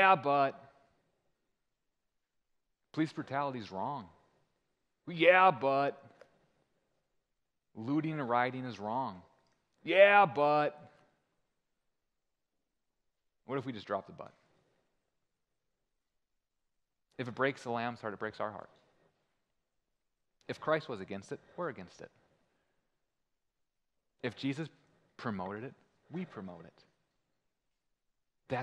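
A young man speaks calmly into a microphone, with pauses between phrases.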